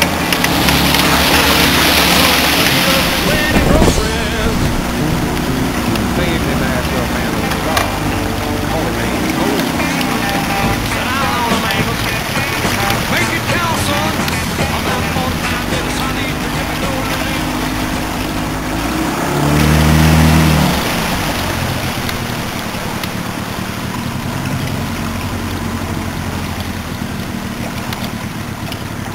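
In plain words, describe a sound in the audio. Water splashes and rushes past a boat's hull.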